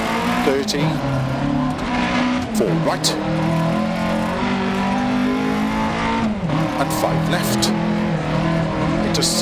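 A rally car engine roars at high revs, dropping briefly as gears shift.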